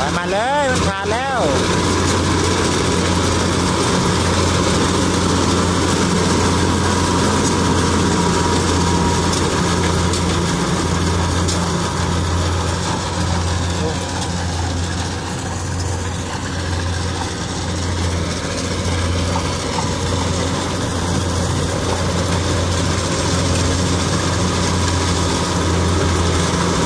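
A combine harvester's engine rumbles steadily close by.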